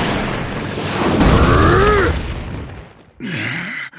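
A deep rumbling blast swells and then fades away.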